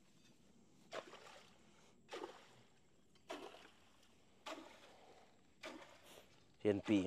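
A hoe scrapes and thuds in wet grass and mud.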